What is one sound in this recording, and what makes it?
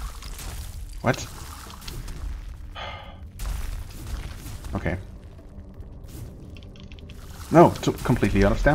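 A blade slashes and strikes a creature with sharp hits.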